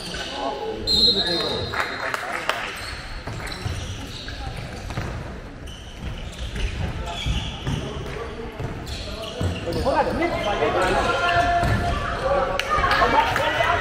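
Young players shout to each other during a handball game.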